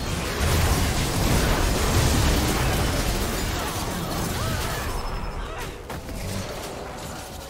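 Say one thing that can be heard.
Magic spells crackle and whoosh in a fast, noisy battle.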